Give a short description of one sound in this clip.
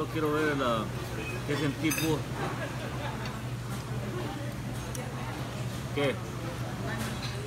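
Cutlery clinks and scrapes on a plate.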